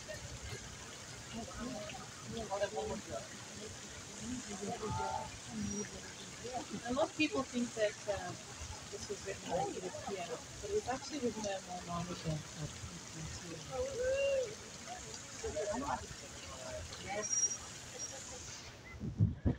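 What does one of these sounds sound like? A woman sings into a microphone outdoors.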